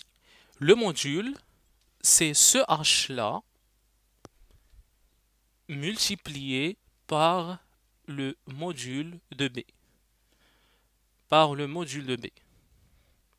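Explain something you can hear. A young man speaks calmly into a close microphone, explaining.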